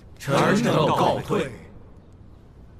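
Several men and a woman say a short farewell together in unison.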